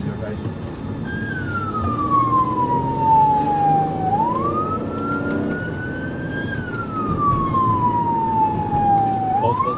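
A police siren wails, rising and falling slowly.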